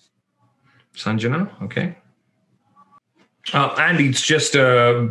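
A young man speaks thoughtfully into a close microphone, with pauses.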